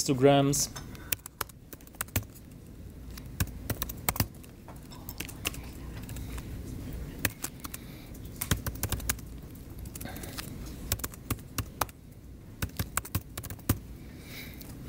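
Keys clack quickly on a computer keyboard.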